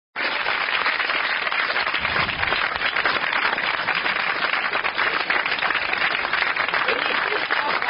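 A studio audience applauds and cheers loudly in a large hall.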